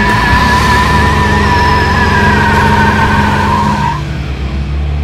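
A truck engine roars loudly.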